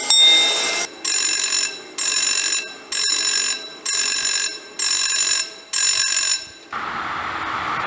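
A railway crossing warning signal sounds in a steady, repeating pulse.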